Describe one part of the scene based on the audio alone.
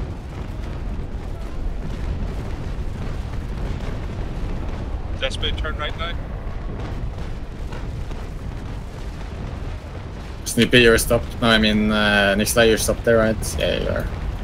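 Cannons fire in heavy, booming volleys.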